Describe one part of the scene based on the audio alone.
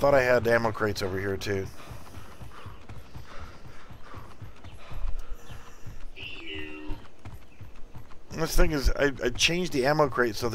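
Footsteps run quickly over pavement.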